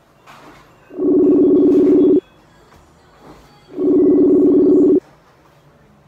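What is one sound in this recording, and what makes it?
A phone call ringtone sounds in two short bursts.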